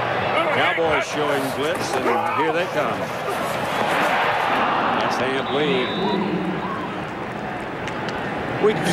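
A large stadium crowd cheers and roars steadily outdoors.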